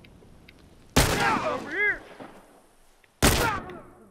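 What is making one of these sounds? Gunshots blast loudly and ring out.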